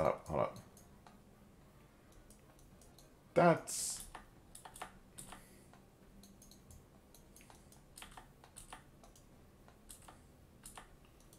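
Soft interface clicks sound as menus open and close.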